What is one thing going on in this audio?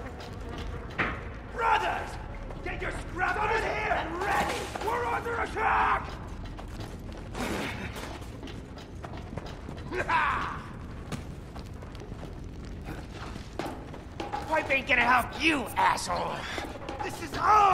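Footsteps thud on metal floors and stairs.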